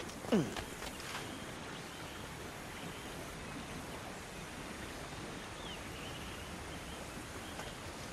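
A wooden water wheel creaks as it turns.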